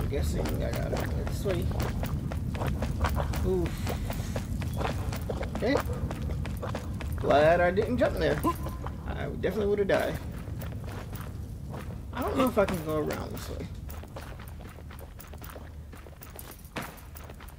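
Footsteps crunch steadily over rough rock.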